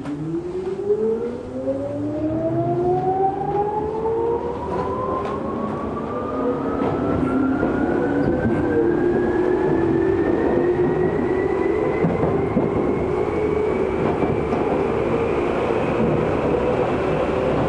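An electric commuter train's motors whine, rising in pitch as the train accelerates, heard from inside the car.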